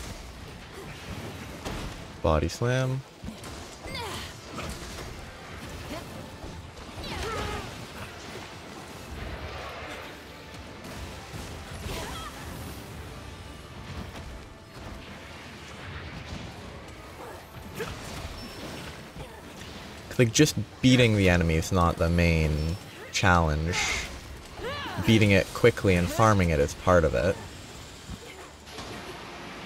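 Heavy blades clang and slash against a huge beast.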